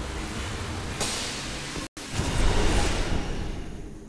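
A magical blast booms and whooshes.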